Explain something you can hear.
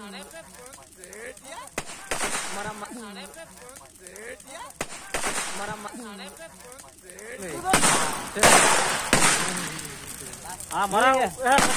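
A large fire roars.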